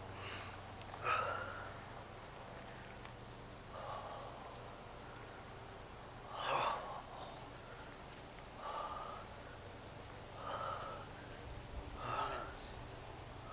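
A young woman speaks in short, breathless bursts.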